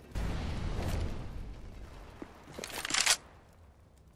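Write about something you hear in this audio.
A rifle is handled with sharp metallic clicks.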